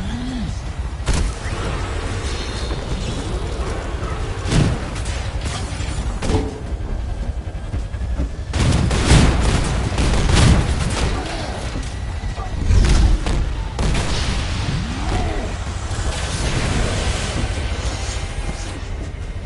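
A low engine hum rumbles steadily.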